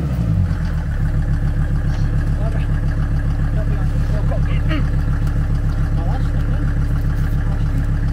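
A vehicle engine idles with a steady low rumble.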